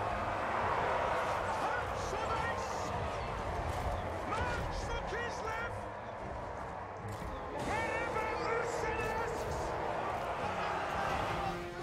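A battle roars with clashing weapons and shouting crowds.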